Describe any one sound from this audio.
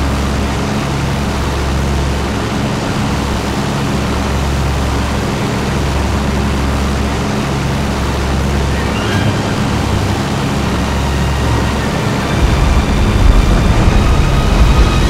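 A propeller aircraft engine drones steadily from close by, growing rougher and louder near the end.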